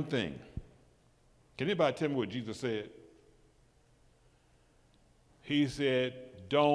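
An older man preaches with animation through a microphone, in bursts with pauses.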